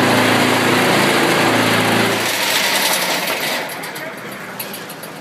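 A pile driver hums and roars loudly close by, then fades.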